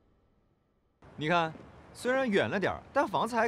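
A young man speaks cheerfully nearby.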